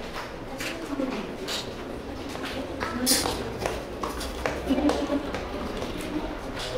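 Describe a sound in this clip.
Footsteps tap on a hard pavement.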